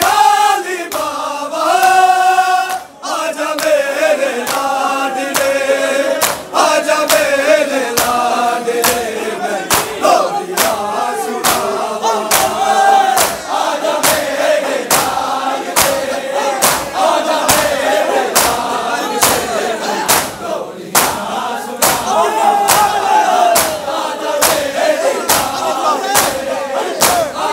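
A large crowd of men beats their chests in a steady, even rhythm.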